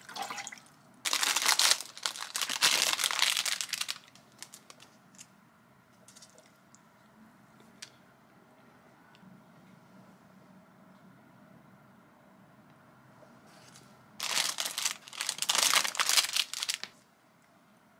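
A plastic wrapper crinkles loudly as it is handled.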